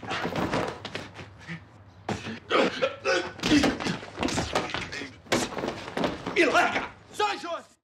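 Bodies thud and scuffle against furniture.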